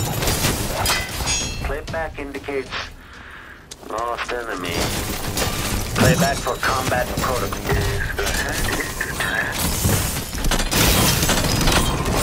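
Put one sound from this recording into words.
A sword clangs against a metal clockwork robot.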